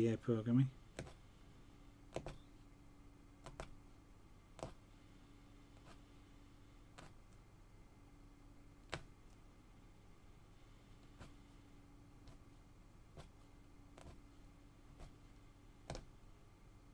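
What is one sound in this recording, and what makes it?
A needle tool pokes through taut cloth with soft, regular taps.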